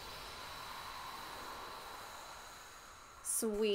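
A magic blade swishes with a shimmering chime.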